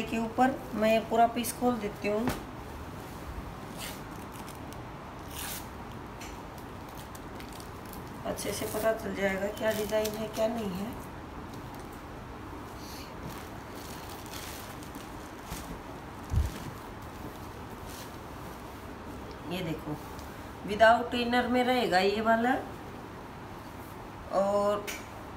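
A woman speaks calmly in short bursts, close by.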